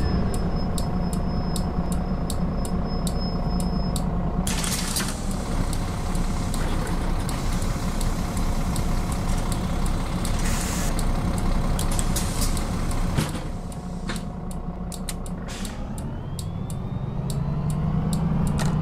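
A turn signal ticks steadily.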